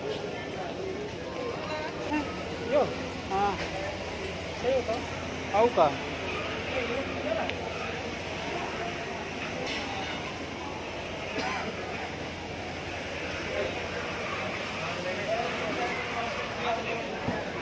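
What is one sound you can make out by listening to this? Shoppers chatter in a large echoing hall.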